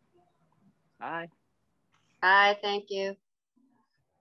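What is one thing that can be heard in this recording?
A second woman speaks briefly and warmly over an online call.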